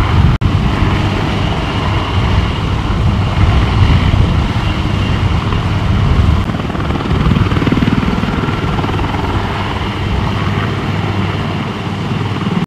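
A helicopter's rotor thumps loudly and steadily as the helicopter hovers nearby.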